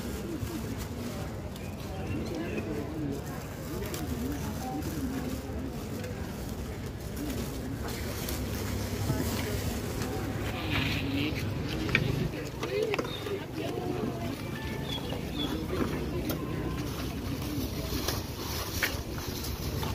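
A plastic bag rustles as it is handled.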